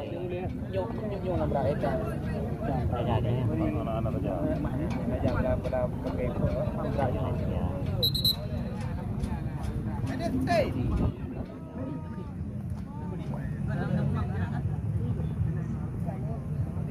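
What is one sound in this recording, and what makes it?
Several young men talk and call out urgently nearby, outdoors.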